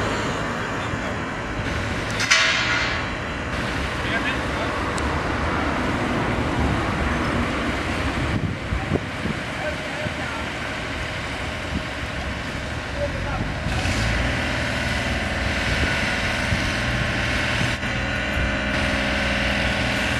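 A crane engine rumbles steadily outdoors.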